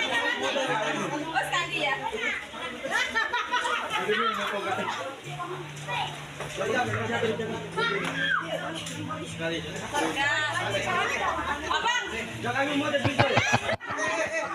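A crowd of people chatters.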